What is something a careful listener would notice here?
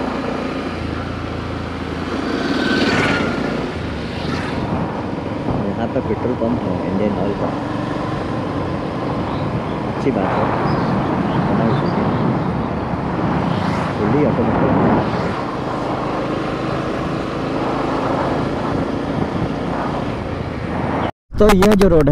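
A motorcycle engine hums and revs up and down while riding.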